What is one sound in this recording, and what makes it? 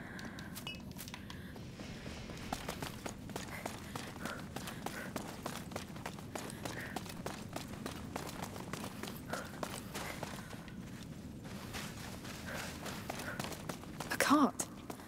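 Footsteps crunch over stone and rubble.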